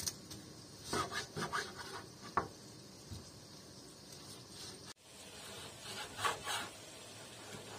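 A knife cuts through raw meat on a wooden board.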